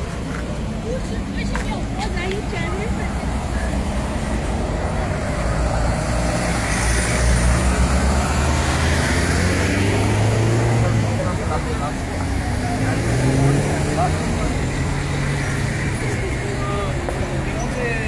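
Traffic hums steadily on a busy street outdoors.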